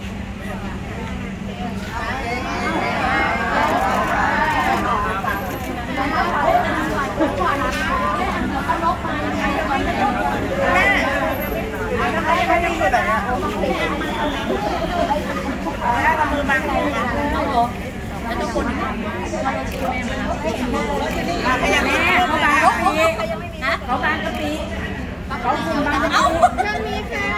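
A crowd of women chatters and laughs excitedly nearby.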